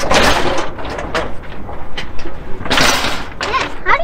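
A metal gate rattles as it is pulled.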